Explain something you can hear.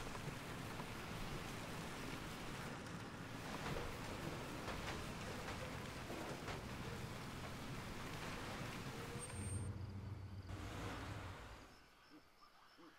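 A vehicle engine rumbles as it drives over rough ground.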